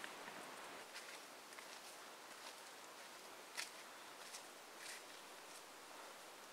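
Footsteps crunch on a forest trail.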